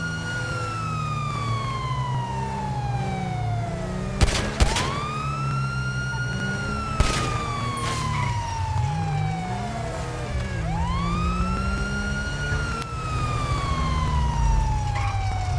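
A police siren wails, rising and falling in long sweeps.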